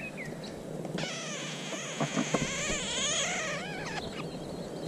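Nestlings beg with rapid, high cheeping.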